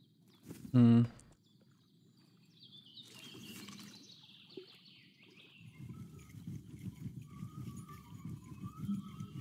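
Water laps gently.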